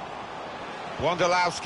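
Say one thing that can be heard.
A young man speaks loudly into a microphone.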